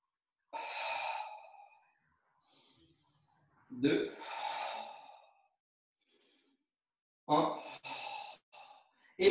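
A young man breathes out hard in bursts, close by.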